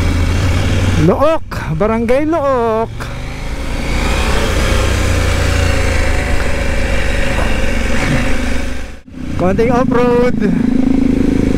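A motorcycle engine revs up quickly, rising in pitch.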